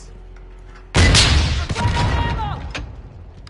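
A pistol fires a few sharp shots.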